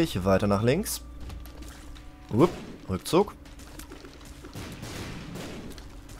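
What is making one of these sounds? Wet splatting bursts sound as creatures burst apart.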